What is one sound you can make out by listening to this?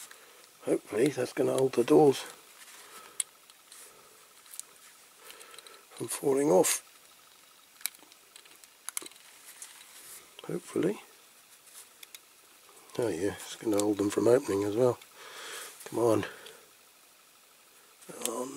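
Small plastic parts click and tap together in someone's hands.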